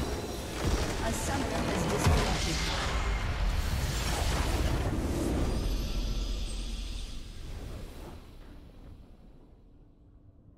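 A large structure explodes with a deep, rumbling blast that slowly fades away.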